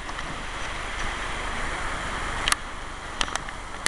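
Dry leaves rustle and crunch underfoot.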